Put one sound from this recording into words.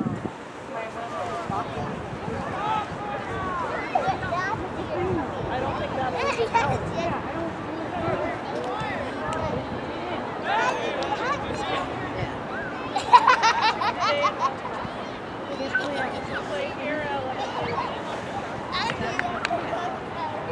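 Spectators chatter and cheer outdoors.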